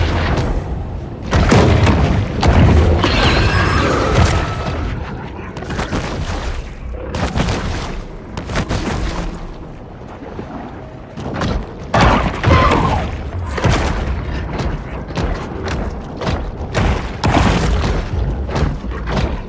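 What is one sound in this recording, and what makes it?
A large sea creature swims underwater with muffled rushing water.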